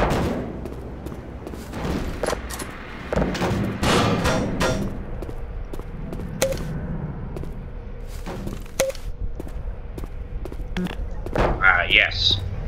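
A metal barrel clunks and scrapes across a concrete floor.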